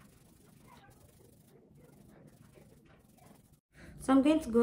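Fingers rustle through hair.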